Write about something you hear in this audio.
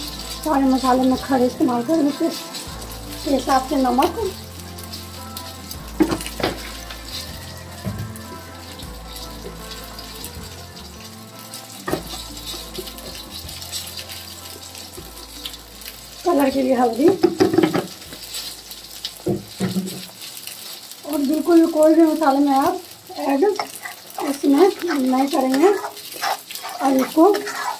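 A thick sauce bubbles and simmers in a pan.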